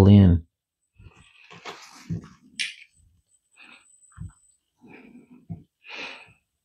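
Small metal parts click and tap softly as hands work on them.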